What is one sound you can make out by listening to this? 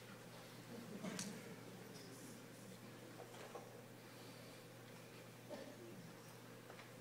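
An audience murmurs and shuffles quietly in a large hall.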